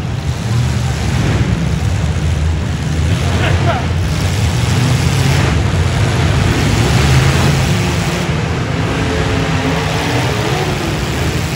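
Car engines rumble and roar loudly in a large echoing arena.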